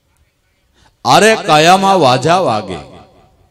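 A middle-aged man sings loudly into a microphone.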